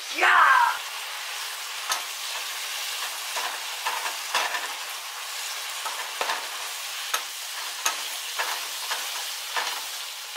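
Meat sizzles in a frying pan.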